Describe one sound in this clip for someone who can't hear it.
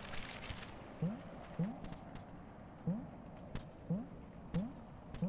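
A video game plays short rising chirps.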